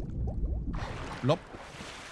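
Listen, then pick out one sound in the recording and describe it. A swimmer splashes and churns through water.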